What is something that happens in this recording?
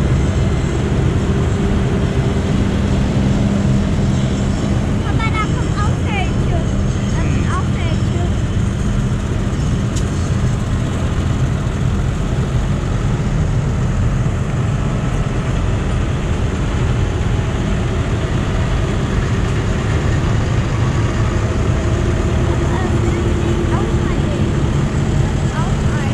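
Tractor engines rumble steadily close by.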